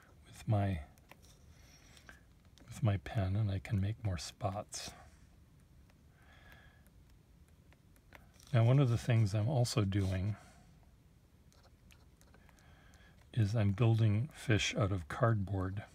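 A pen nib scratches softly on paper.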